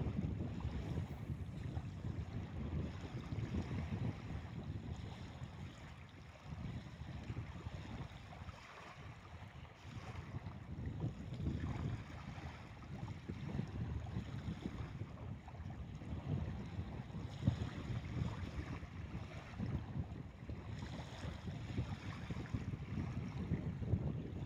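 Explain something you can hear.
Wind blows across the microphone outdoors in gusts.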